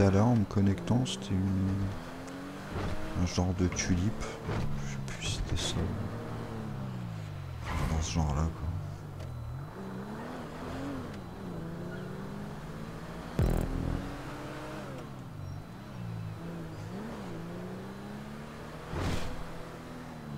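Car tyres thump and clatter over ramps.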